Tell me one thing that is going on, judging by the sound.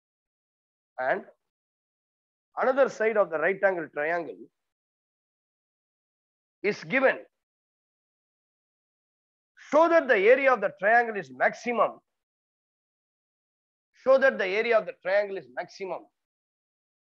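A man speaks calmly close by, in short phrases with pauses.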